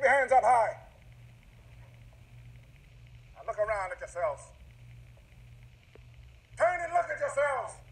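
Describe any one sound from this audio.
A man preaches loudly and with fervour into a microphone.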